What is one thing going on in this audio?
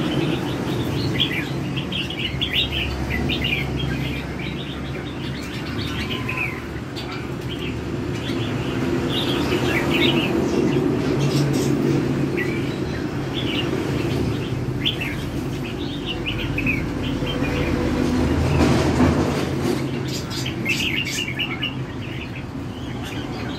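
Caged birds chirp and twitter in short bursts close by.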